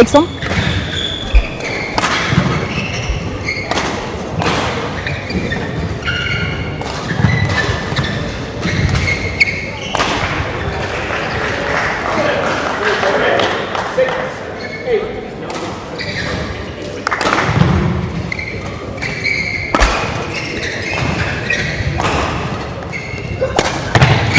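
Shuttlecocks are struck with sharp pops of rackets in a large echoing hall.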